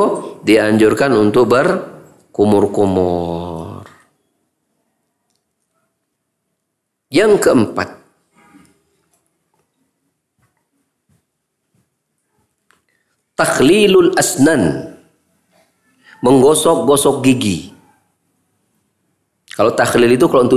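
A middle-aged man speaks slowly and deliberately into a close microphone, with long pauses.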